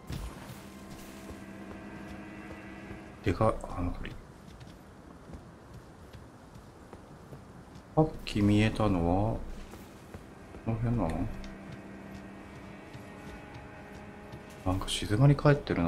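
Footsteps crunch on grass and stone.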